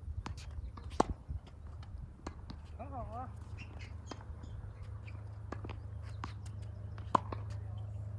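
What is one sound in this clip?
Tennis balls are struck with rackets with sharp pops.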